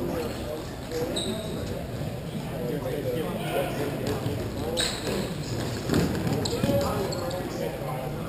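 Plastic wheels of inline skates roll and scrape on a hard floor in a large echoing hall.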